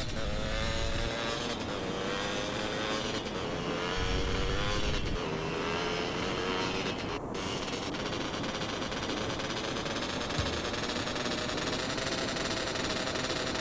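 A motorbike engine drones steadily, rising and falling in pitch as it speeds along.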